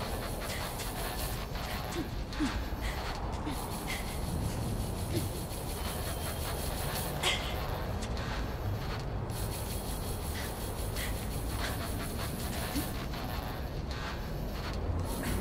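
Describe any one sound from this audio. Hands grab and shuffle along a ledge with soft scraping thuds.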